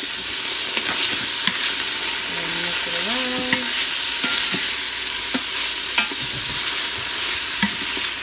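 A wooden spoon stirs food in a metal pot.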